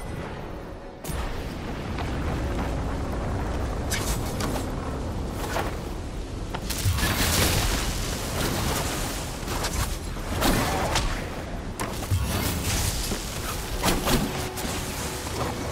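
Stormy wind and rain roar steadily.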